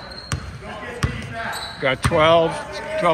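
A basketball bounces on a hard wooden floor in an echoing gym.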